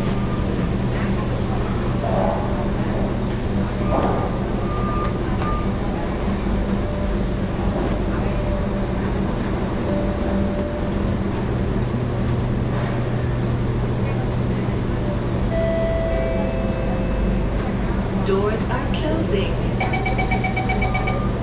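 A train's motors and fans hum steadily.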